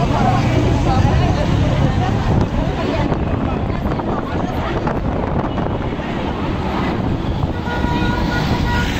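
Street traffic hums steadily in the background.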